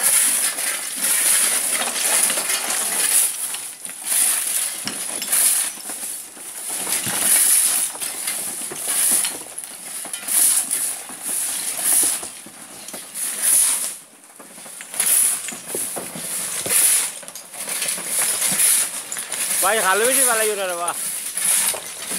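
A shovel scrapes through loose stones again and again.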